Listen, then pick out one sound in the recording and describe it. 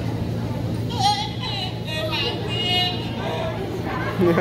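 A young man speaks loudly through a loudspeaker.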